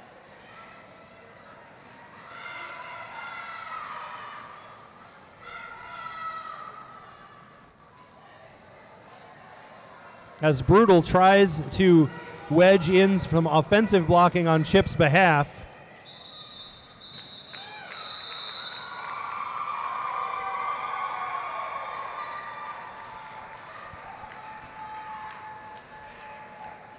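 A crowd of spectators chatters and cheers in the distance.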